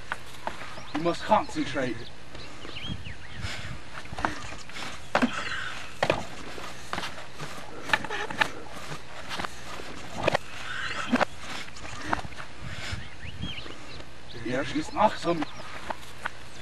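A young man shouts and laughs outdoors nearby.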